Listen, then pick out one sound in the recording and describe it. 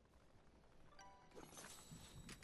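A bright chime rings as an item is picked up.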